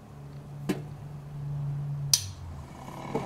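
A hand crank winds a spring motor with a low whirring.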